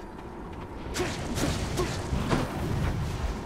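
A shimmering magical whoosh rings out.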